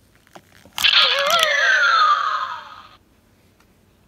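A toy medal watch plays a bright electronic jingle with a falling tone.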